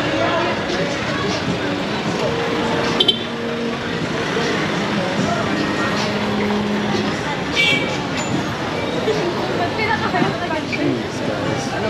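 A busy street crowd murmurs and chatters all around, heard outdoors.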